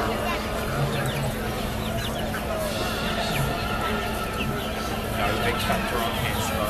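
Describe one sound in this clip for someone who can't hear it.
A group of ducklings peep.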